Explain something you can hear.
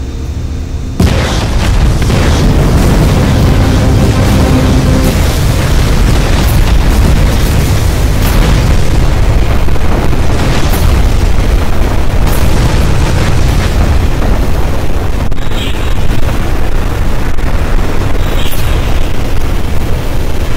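Explosions boom and rumble continuously.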